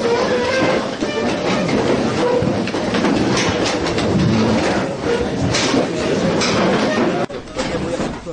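A crowd of men talks loudly all at once.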